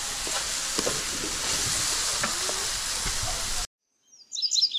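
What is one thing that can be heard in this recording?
Food sizzles and crackles on a hot grill.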